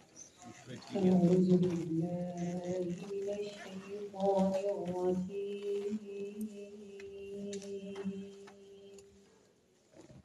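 A man chants in long, drawn-out tones through a microphone.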